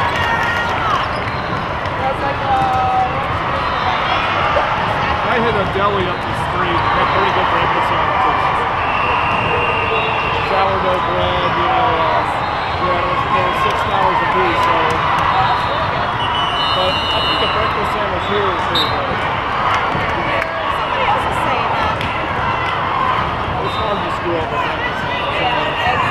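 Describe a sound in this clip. A large crowd chatters throughout a big echoing hall.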